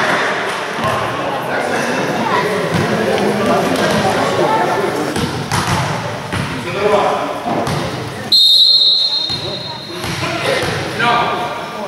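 A crowd of players and spectators shouts and cheers in a large echoing hall.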